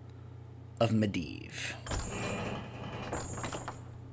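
A game menu button clicks.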